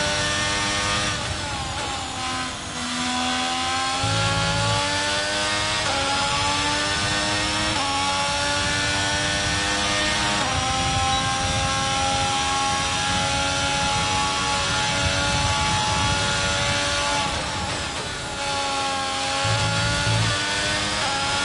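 A racing car engine screams at high revs, rising through the gears and dropping as it slows for corners.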